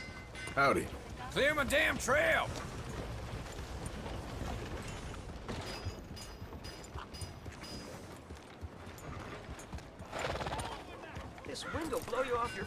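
A horse's hooves thud slowly on a dirt street.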